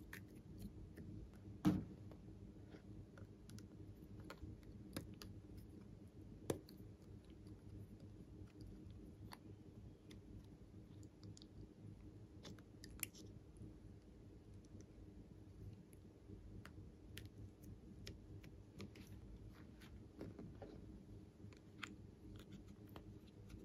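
Small plastic pieces click and tap against each other.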